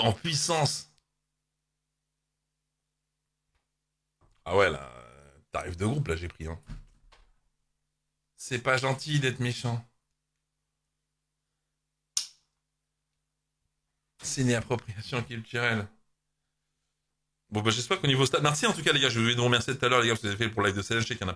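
A man talks into a close microphone in short bursts, with pauses between.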